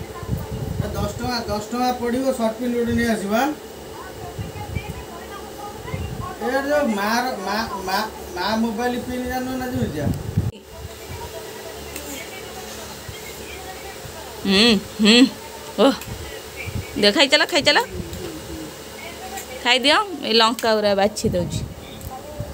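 A young girl talks and babbles close by.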